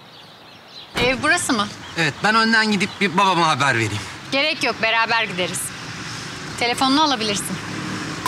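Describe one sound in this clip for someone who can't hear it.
A young woman speaks cheerfully up close.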